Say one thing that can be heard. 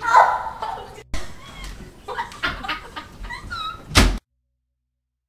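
Young women laugh and shriek loudly close by.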